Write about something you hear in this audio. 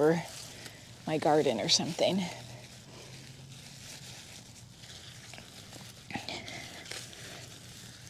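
A young woman talks calmly and close to a microphone.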